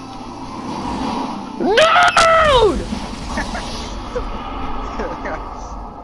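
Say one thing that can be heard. A heavy truck crashes and tumbles down a rocky slope.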